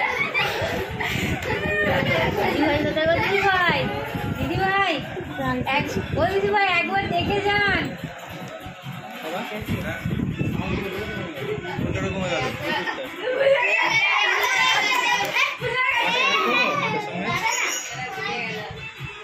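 Children and young women laugh nearby.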